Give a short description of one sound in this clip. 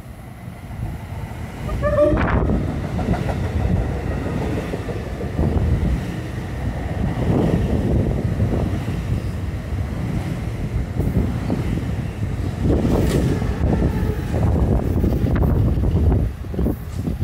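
A train rumbles past close by, its wheels clattering over the rails.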